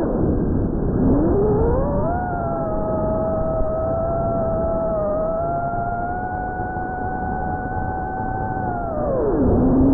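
The electric motors of a small quadcopter drone whine, rising in pitch as it speeds up and dropping at the end.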